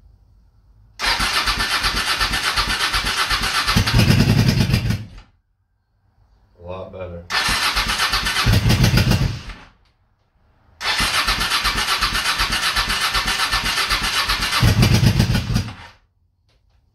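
A motorcycle's starter motor cranks the engine rapidly in several long bursts.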